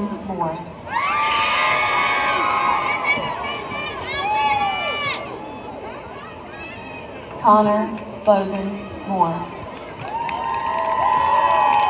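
A crowd cheers and whoops loudly outdoors.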